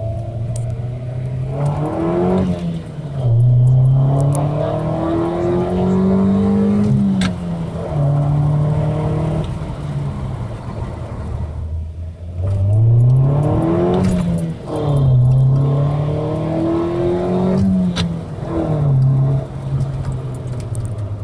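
A car engine revs hard, rising in pitch through each gear and dropping briefly at every shift.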